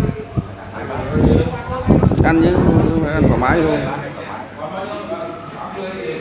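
A young man speaks up close with animation.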